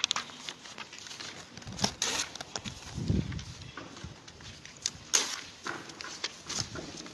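Paper and plastic rustle and tap.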